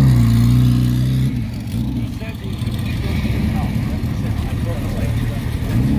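A motorcycle rides off and fades into the distance.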